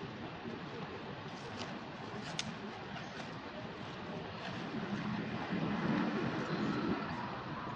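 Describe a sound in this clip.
Dry leaves rustle as monkeys walk over the ground.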